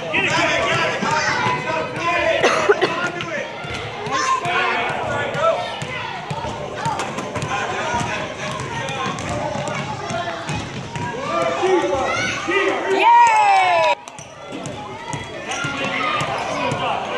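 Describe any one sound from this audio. Basketballs bounce on a hard floor.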